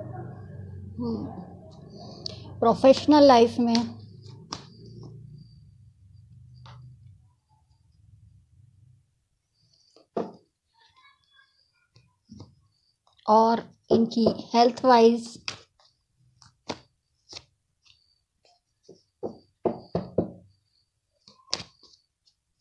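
Playing cards shuffle and rustle.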